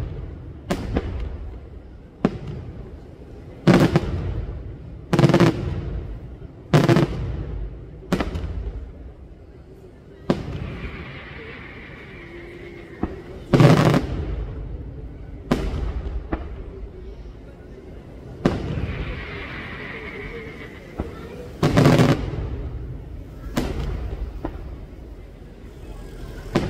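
Fireworks explode with loud booms, one after another, each rumbling away in a long echo.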